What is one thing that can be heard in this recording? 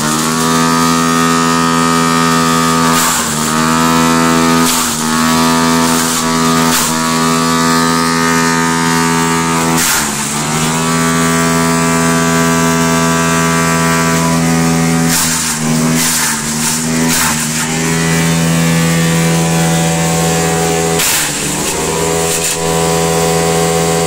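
A wood chipper engine runs with a loud steady drone.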